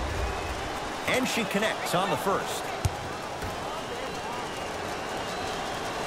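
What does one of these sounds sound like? A basketball bounces on a hard court.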